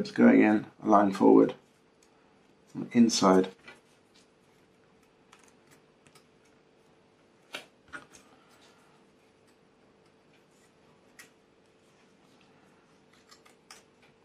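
Thin wooden strips creak and click softly under pressing fingers.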